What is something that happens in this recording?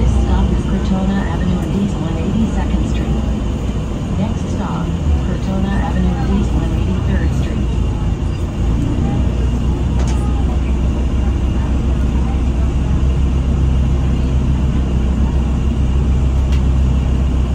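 The bus body rattles and clatters over the road.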